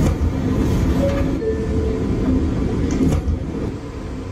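Subway train doors slide shut with a thud.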